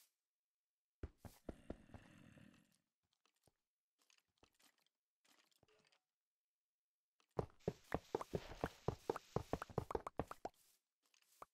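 Rails crack and break apart in quick bursts.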